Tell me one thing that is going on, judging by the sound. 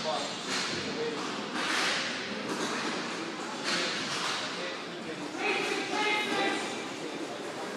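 Plastic wheels roll and scrape across a hard floor.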